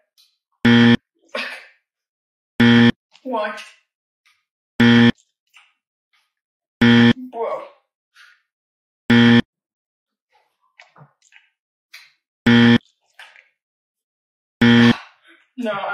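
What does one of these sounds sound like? A loud electronic buzzer sounds again and again.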